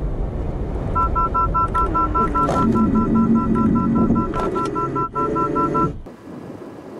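A warning chime beeps fast inside a car.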